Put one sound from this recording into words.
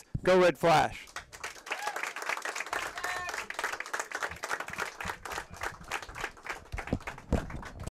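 A crowd applauds and cheers in a room.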